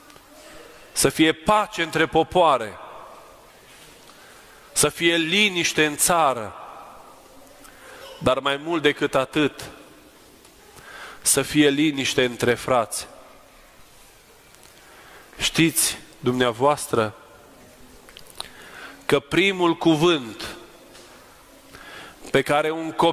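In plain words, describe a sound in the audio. A man speaks calmly in bursts of phrases, with a slight echo.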